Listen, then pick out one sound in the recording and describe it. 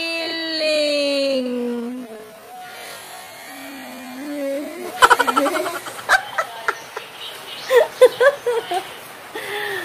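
A young girl laughs and talks close by.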